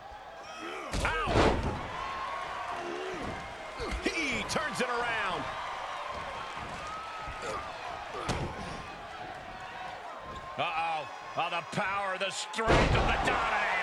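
A body slams hard onto a ring mat.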